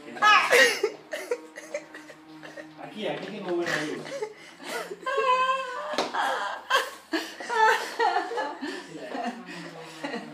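A young woman laughs loudly nearby.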